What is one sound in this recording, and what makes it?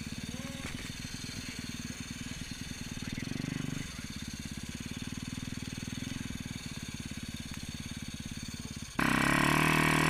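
A dirt bike engine idles close by with a rapid putter.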